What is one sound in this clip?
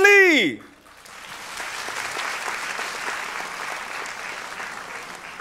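A man claps his hands close by.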